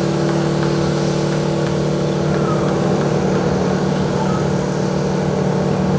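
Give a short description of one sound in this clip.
A jet airliner's engines hum and whine steadily nearby.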